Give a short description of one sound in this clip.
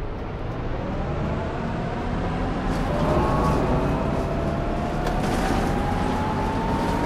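A bus engine hums and whines steadily, rising in pitch as it speeds up.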